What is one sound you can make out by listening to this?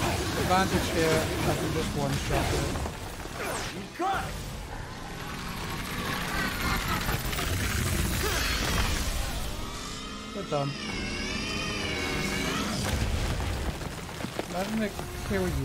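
A giant creature shrieks and growls.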